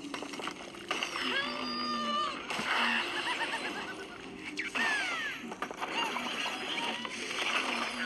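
Video game sound effects chirp, whistle and swoop through a small speaker.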